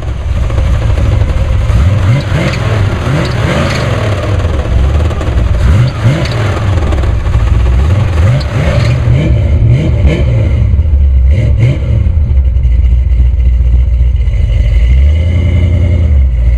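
A car engine idles with a deep, uneven rumble and revs up now and then.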